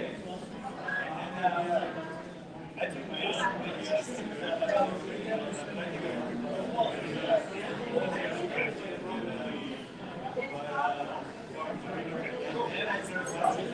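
Dishes and cutlery clink now and then.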